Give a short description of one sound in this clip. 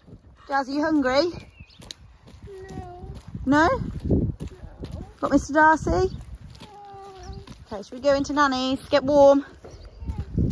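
A young girl talks and sings in a high voice close by.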